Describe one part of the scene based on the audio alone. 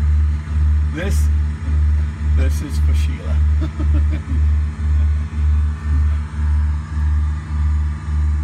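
A low engine drone throbs steadily through loudspeakers.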